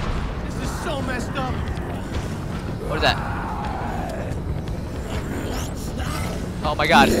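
A young man talks with animation, heard through a microphone.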